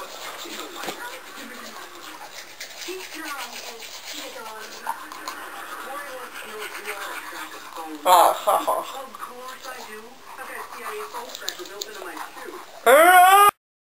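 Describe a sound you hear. Toothbrushes scrub softly against teeth.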